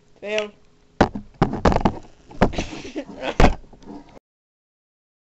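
Loud bumps and rustles as a microphone is handled.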